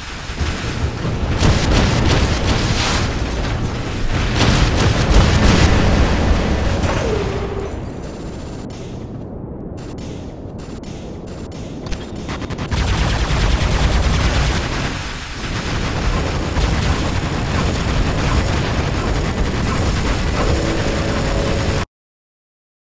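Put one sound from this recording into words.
Heavy gunfire and explosions rumble and boom from a robot battle.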